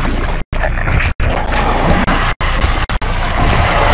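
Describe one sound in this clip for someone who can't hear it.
Flesh bursts apart with a wet splatter.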